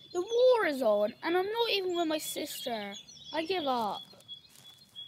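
A young boy talks with animation, close by.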